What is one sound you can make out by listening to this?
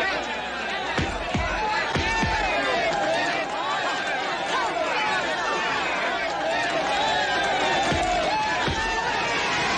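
Fists thud against bare bodies in a fistfight.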